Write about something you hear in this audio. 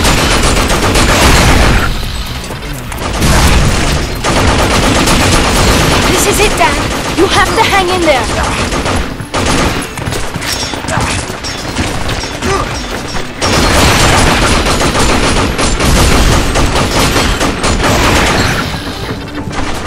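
Rapid gunfire rattles in bursts, loud and close.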